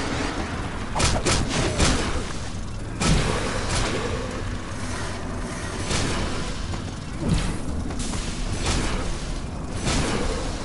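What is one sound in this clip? Punches and blows land with sharp thuds.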